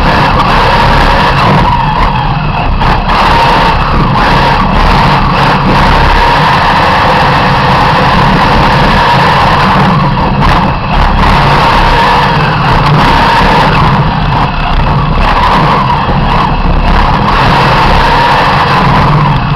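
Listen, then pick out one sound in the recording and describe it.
A race car engine roars loudly up close, rising and falling as the car accelerates and brakes.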